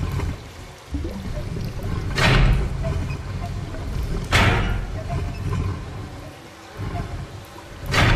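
A metal valve wheel creaks as it turns.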